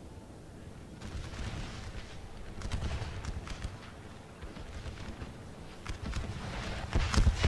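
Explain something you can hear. Guns fire in distant, rumbling volleys that grow louder.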